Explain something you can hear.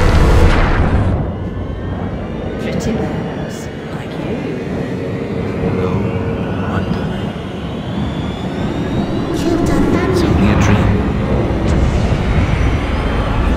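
A loud rush of wind roars steadily.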